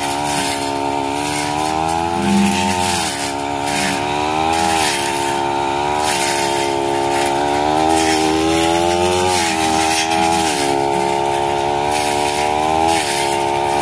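A petrol brush cutter engine whines loudly close by, its pitch rising and falling.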